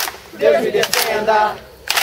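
Wooden sticks clack together in a mock fight.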